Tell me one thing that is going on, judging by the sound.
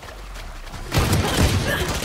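A gun fires a burst of rapid shots.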